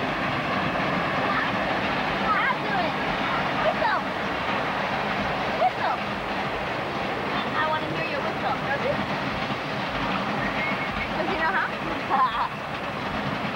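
A small boy babbles and squeals nearby.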